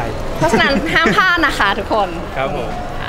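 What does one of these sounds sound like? A young woman laughs into microphones.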